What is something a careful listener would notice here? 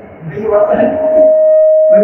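A middle-aged woman speaks through a microphone.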